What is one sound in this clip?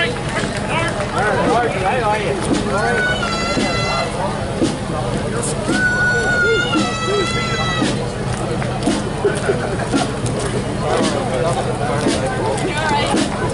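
A crowd of onlookers chatters nearby.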